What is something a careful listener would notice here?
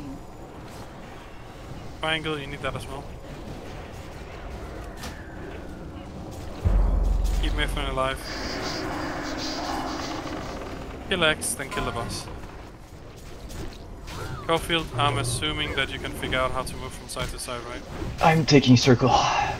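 Magic spells crackle and boom amid a fantasy battle.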